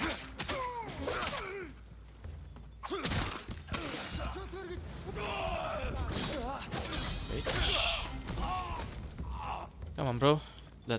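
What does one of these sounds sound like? Swords clash and strike sharply, again and again.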